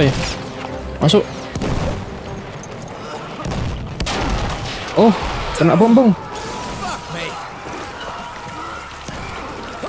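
Rifle shots crack.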